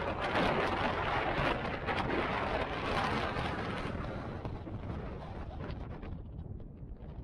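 Strong wind gusts and roars across open ground, easing off toward the end.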